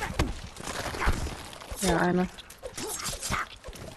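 Heavy blows thud into flesh.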